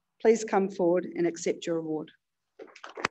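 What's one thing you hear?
A woman speaks calmly into a microphone, heard over a loudspeaker in a large hall.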